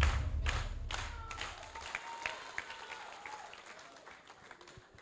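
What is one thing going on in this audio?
A crowd claps and cheers.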